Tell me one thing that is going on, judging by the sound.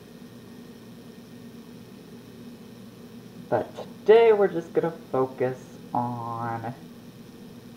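Small pieces drop softly into a metal pot.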